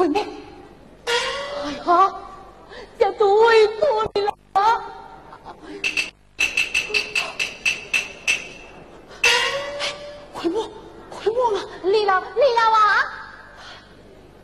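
A woman speaks and sings in a high, stylised opera voice.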